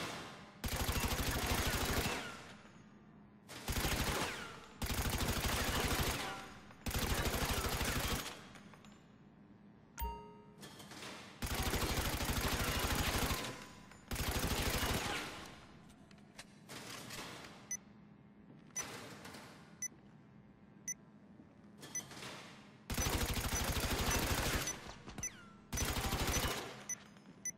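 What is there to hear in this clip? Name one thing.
An automatic rifle fires rapid bursts of shots that echo in an enclosed indoor range.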